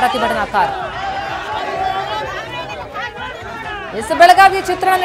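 A crowd of men shouts and argues loudly outdoors.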